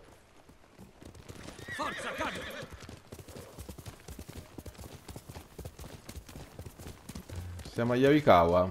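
A horse gallops, hooves thudding on soft ground.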